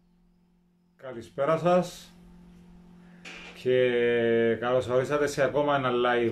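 A young man speaks to the listener up close in a lively way.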